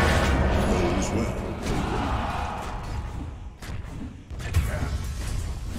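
Spell blasts and weapon clashes crackle in a fast fight.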